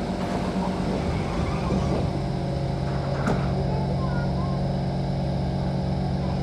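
A train's motor hums steadily.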